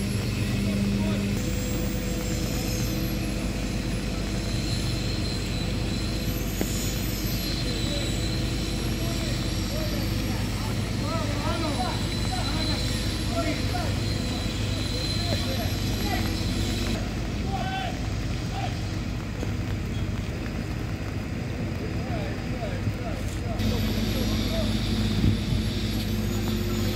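A crane's engine hums steadily as it lifts a heavy load outdoors.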